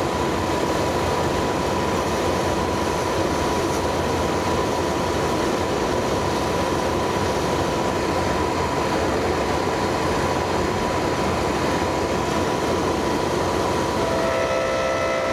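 A dust extractor roars steadily.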